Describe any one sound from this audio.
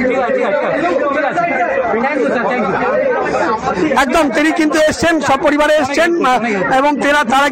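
Men and women talk over each other in a crowd.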